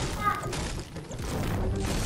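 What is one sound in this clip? A pickaxe strikes a wooden roof with sharp knocks.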